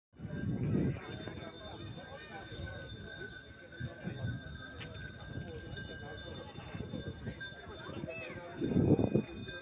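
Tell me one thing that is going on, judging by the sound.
Horses' hooves thud on soft dirt.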